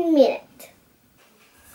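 A young girl speaks briefly and calmly, close by.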